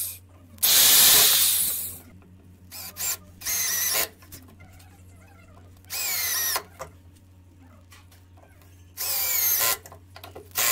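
A power drill whirs in short bursts.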